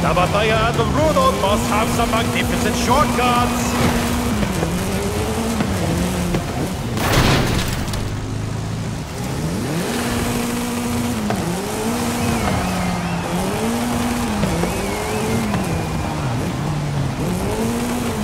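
Tyres skid and scrape on loose dirt.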